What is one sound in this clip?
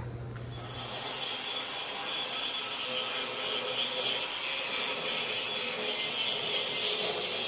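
A plasma cutter hisses steadily as it cuts through steel.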